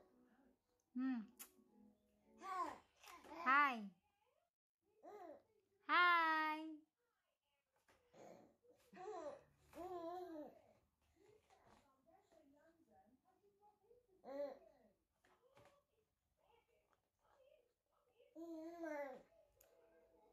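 A baby babbles and squeals up close.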